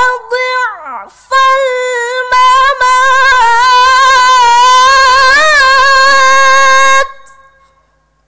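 A woman chants in a high, drawn-out voice through a microphone.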